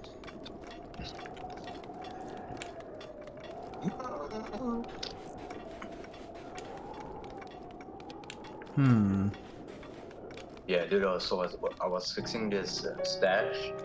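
Quick footsteps patter on dry ground.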